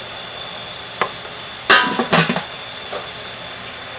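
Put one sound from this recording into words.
A lid clanks down onto a pot.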